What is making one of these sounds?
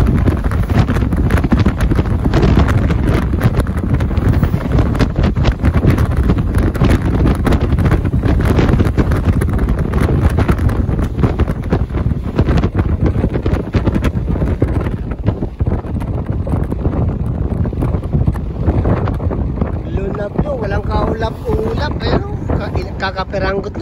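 Wind roars loudly past a moving vehicle.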